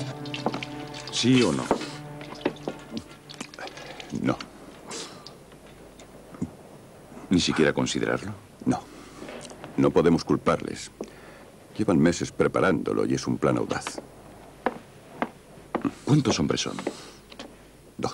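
A man speaks tensely at close range.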